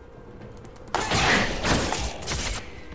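Magical spell effects whoosh and clash in a video game fight.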